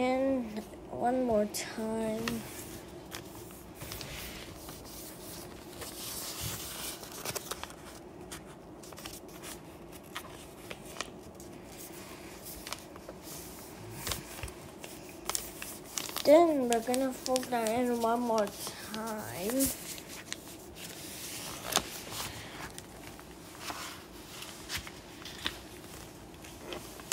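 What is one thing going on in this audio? Paper rustles and crinkles as it is folded and creased by hand.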